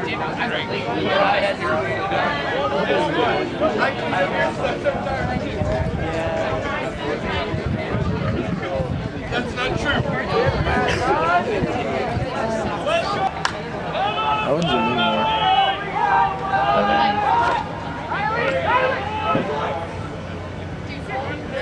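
A crowd of spectators shouts and cheers close by.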